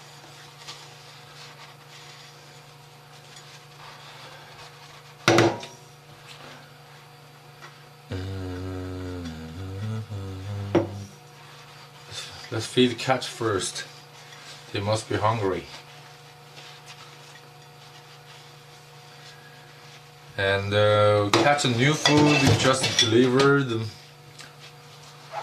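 Dishes clink in a sink as they are washed.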